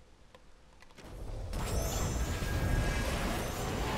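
A game creature attack plays with a loud roaring, rushing effect.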